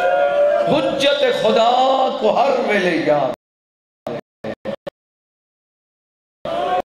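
A man speaks forcefully into a microphone through loudspeakers.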